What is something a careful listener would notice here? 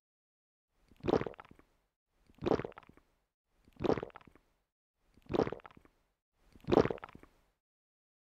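A young woman gulps down water in loud swallows.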